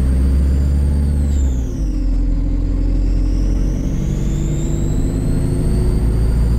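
A bus engine rumbles low and steady while the bus drives along.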